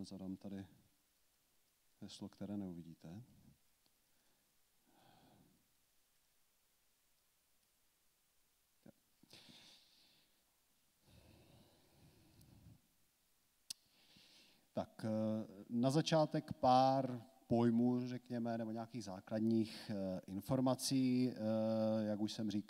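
A man speaks calmly through a microphone in a large room, with pauses.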